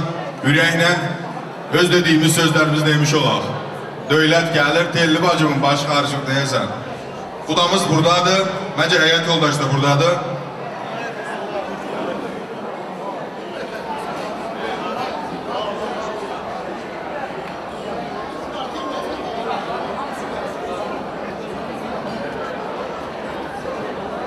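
A crowd of guests chatters in a large room.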